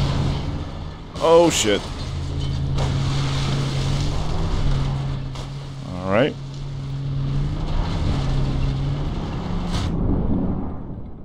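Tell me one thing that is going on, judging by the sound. A car engine drones steadily while driving over rough ground.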